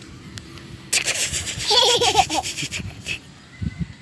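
A little girl giggles close by.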